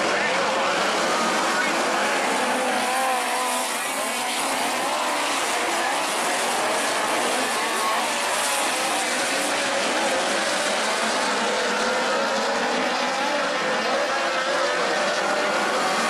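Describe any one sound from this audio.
Race car engines roar and whine loudly around a dirt track.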